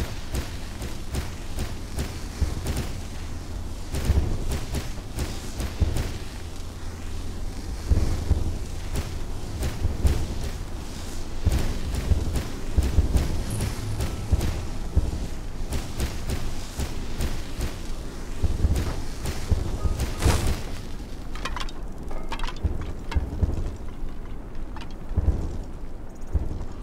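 Footsteps thud steadily over grass outdoors.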